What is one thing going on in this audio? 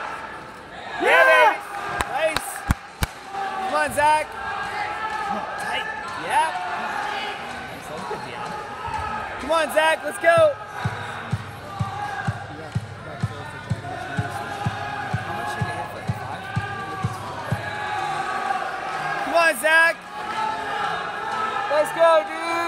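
Men and women in a crowd shout and cheer loudly.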